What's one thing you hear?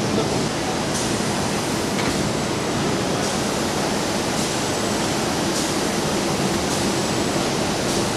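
A robotic arm clicks and whirs as it moves.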